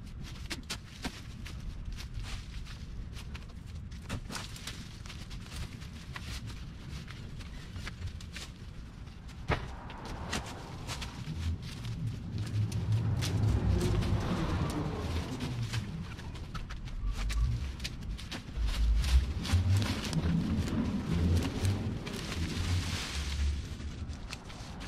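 Vines snap and tear as they are pulled off a wall.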